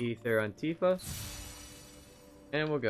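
A sparkling magical burst crackles.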